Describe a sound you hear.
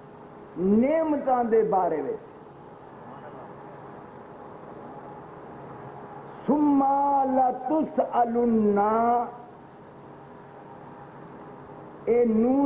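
An elderly man chants loudly into a microphone in long, wavering phrases with pauses between them.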